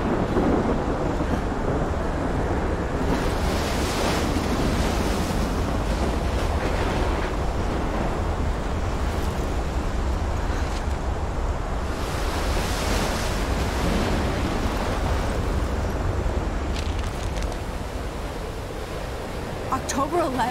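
Storm wind roars loudly and steadily.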